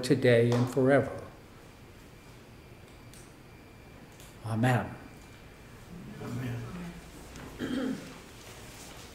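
An elderly man speaks slowly and calmly into a microphone, with pauses.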